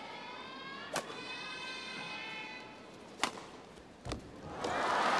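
A shuttlecock is struck sharply with a racket.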